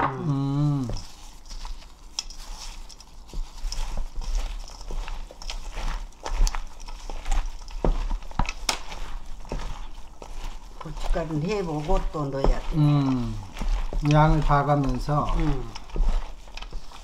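Gloved hands toss and squish wet shredded vegetables in a metal bowl.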